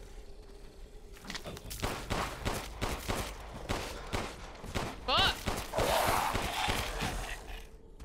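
Gunshots bang sharply in a game.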